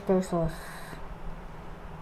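Liquid pours into a glass bowl.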